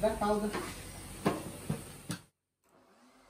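A blender whirs loudly.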